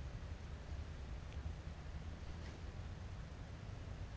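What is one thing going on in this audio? Dry leaf litter rustles as a person shifts position on the ground.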